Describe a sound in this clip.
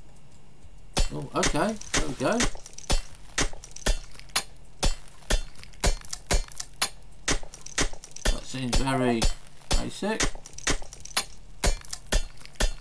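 A pickaxe chips at rock with steady, repeated strikes.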